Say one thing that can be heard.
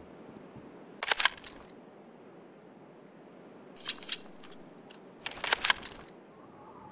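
A gun's metal parts click and rattle as it is handled.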